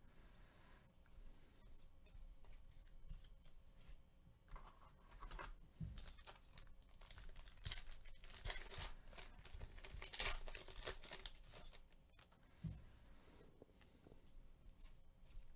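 Cards shuffle and flick against each other.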